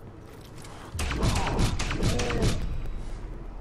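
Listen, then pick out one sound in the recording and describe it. A pistol fires several quick shots.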